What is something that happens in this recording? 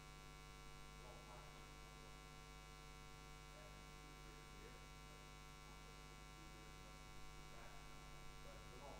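A middle-aged man speaks with animation, faint and distant.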